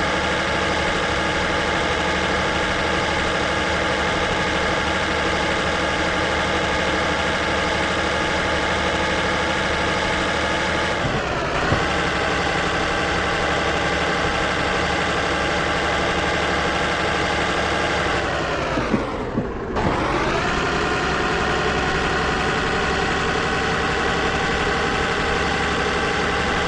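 A heavy truck engine drones steadily and briefly drops in pitch as the gears change.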